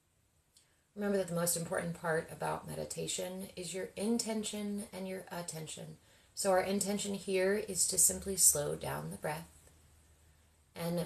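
A young woman speaks slowly and calmly, close by.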